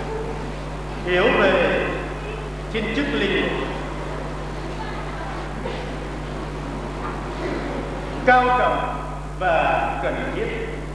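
A man preaches through a microphone in an echoing hall, speaking slowly with pauses.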